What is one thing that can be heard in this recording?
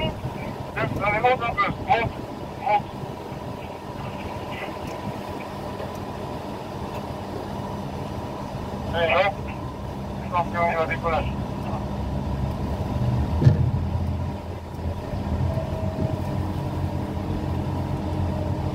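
A crane motor hums steadily nearby.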